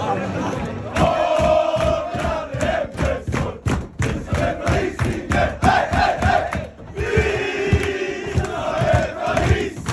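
Hands clap and feet stomp in a steady beat.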